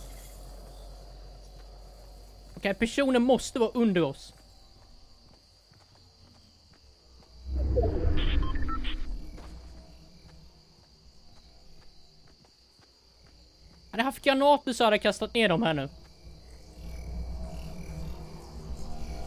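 Soft footsteps pad over grass.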